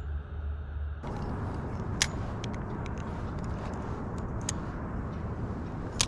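Wind blows across open water outdoors.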